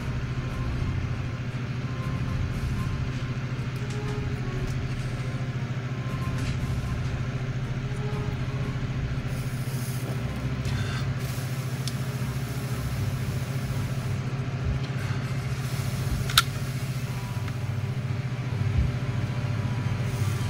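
Small metal parts click and tap softly on a table.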